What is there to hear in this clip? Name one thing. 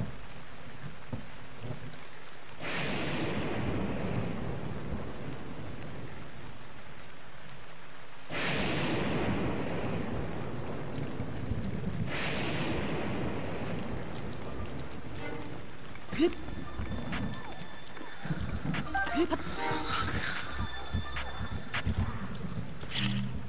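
Heavy rain pours steadily.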